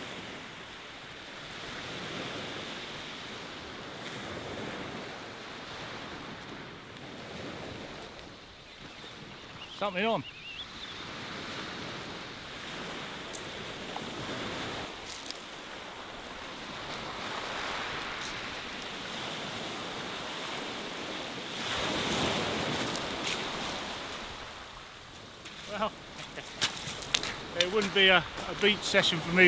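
Waves wash and break on a shingle shore.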